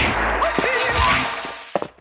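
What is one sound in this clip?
A magical energy blast whooshes and crackles.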